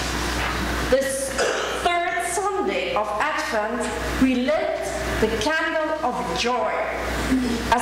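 A woman reads aloud calmly into a microphone in an echoing hall.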